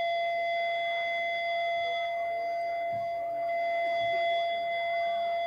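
An electric guitar plays loudly.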